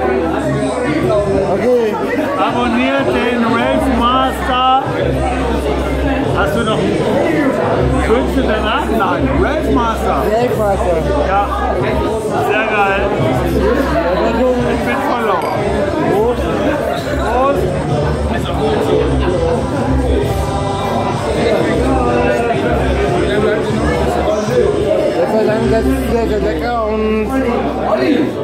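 Many voices chatter in the background of a busy room.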